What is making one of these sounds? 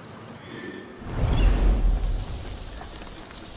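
A body drops with a heavy, rustling thud into dense plants.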